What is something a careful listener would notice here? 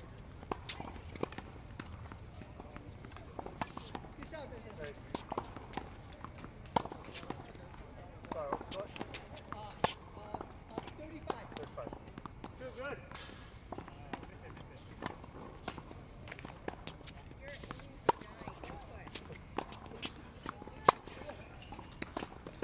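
Tennis rackets strike a ball back and forth outdoors.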